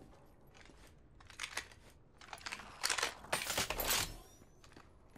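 A gun clicks and clacks as it is picked up and loaded.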